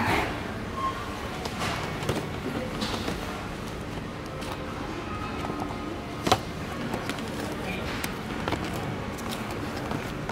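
Plastic toy packaging rustles and crinkles as it is handled.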